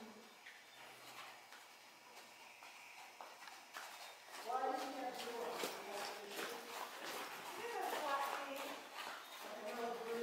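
A horse's hooves thud softly on sand as it trots past close by.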